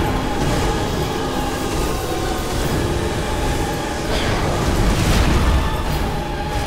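A sword swings and strikes with a metallic clang.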